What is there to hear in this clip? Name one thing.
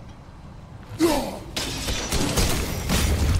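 A thrown axe whooshes through the air and strikes with a sharp metallic clang.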